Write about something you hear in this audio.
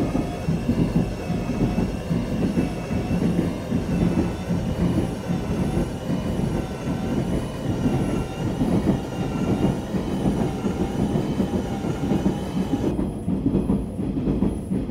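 A train rumbles steadily along the tracks with a high motor whine.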